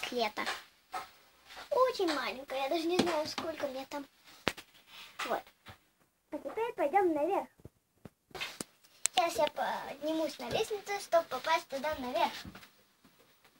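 A young girl speaks with animation close by.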